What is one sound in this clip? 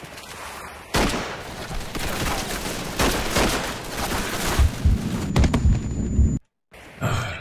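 Rifle shots crack in bursts.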